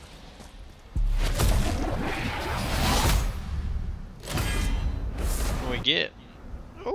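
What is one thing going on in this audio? A rift bursts open with a loud magical whoosh and crackle.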